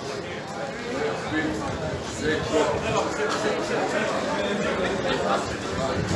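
A crowd of men and women talk with animation nearby, outdoors.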